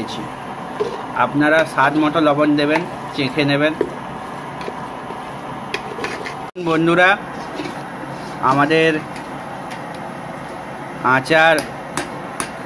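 A metal spoon stirs and scrapes thick food in a pot.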